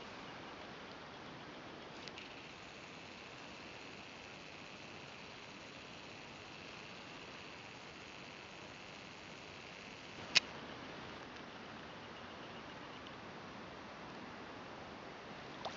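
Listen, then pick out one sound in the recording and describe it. An animal swims quietly through still water, softly rippling it.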